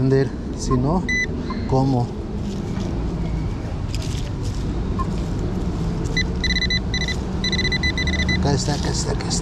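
A metal detector beeps in short, quick bursts.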